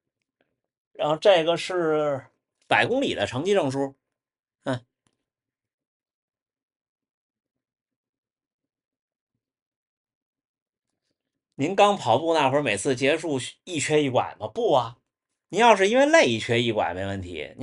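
A young man talks calmly from close by.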